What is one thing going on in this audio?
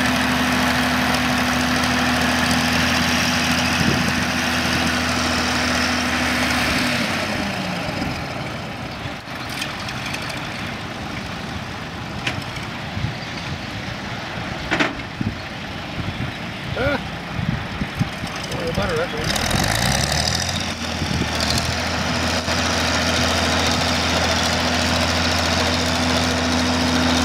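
A tractor engine chugs steadily, idling down and then revving up again.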